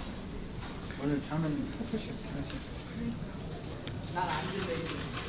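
People talk quietly in a large echoing hall.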